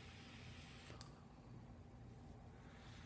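A man breathes out a long puff.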